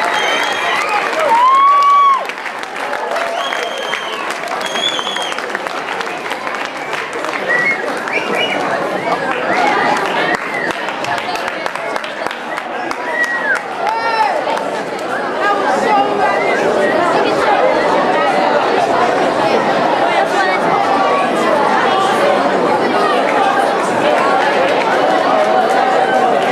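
A crowd of young people chatters and cheers, growing louder.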